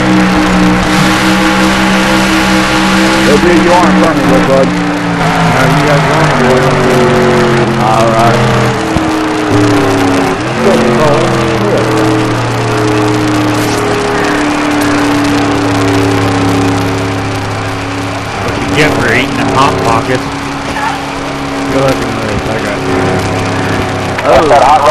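A race car engine roars steadily at high speed, its pitch shifting as it changes gear.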